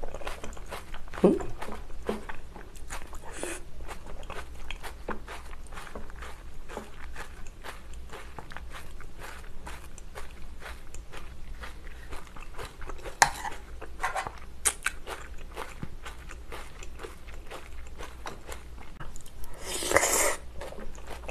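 A spoon and chopsticks scrape and clink against a metal tray.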